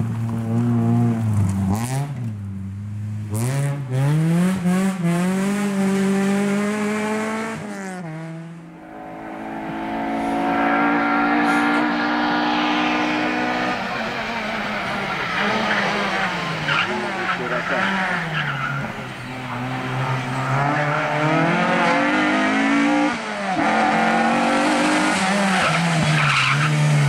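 A rally car engine revs hard, its pitch rising and falling as the car changes gear.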